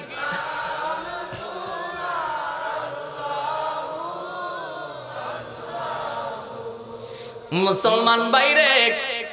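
A man speaks into a microphone through a loudspeaker, chanting in a melodic, rising voice.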